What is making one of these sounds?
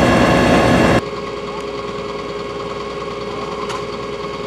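A fire truck's engine idles steadily.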